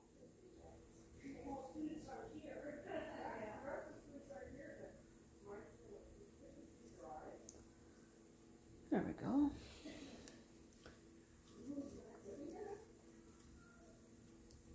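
Hands rub and smooth soft clay.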